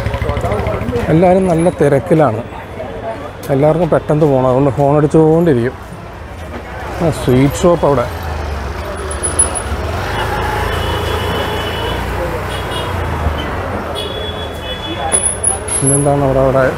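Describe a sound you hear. A man talks loudly and close by.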